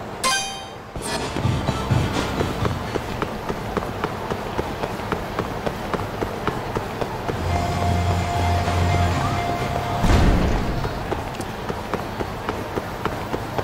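Footsteps patter quickly as someone runs on pavement.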